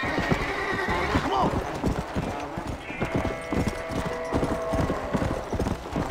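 A horse gallops with rapid, heavy hoofbeats on soft ground.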